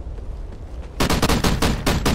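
A rifle fires rapid bursts of loud gunshots.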